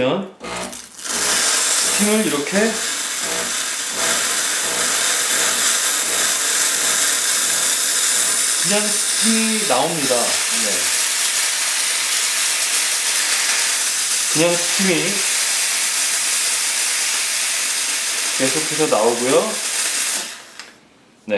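Steam hisses loudly and steadily from an espresso machine's wand.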